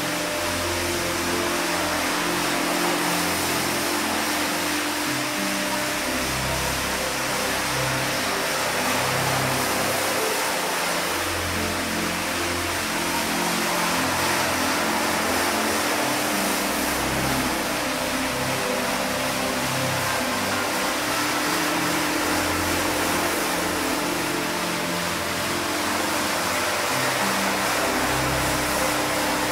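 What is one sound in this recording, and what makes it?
A rotary floor scrubber whirs as it scrubs a wet, soapy rug.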